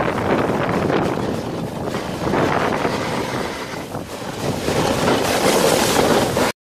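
A sled scrapes and hisses over packed snow.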